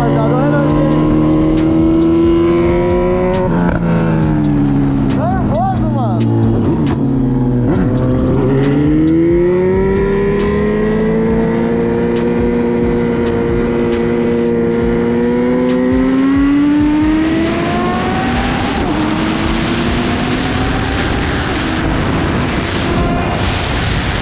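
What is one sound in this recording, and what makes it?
A motorcycle engine drones close by, its pitch falling and rising as it slows and speeds up.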